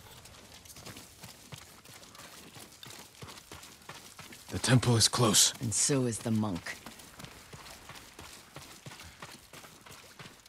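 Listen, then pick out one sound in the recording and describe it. Footsteps patter quickly over wet ground and grass.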